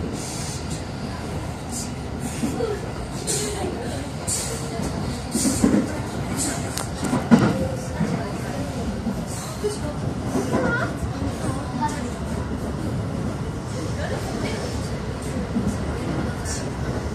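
Train wheels clatter and squeal over the rails.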